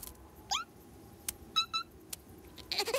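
A small chick chirps in short high peeps.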